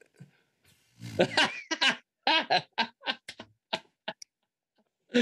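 A man laughs heartily over an online call.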